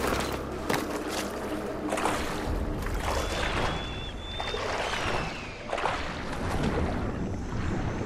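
Water splashes as someone wades through a shallow stream.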